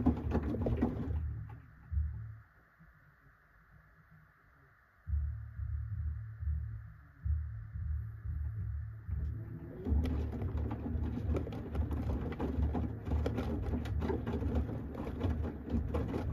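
A washing machine drum rumbles as it turns.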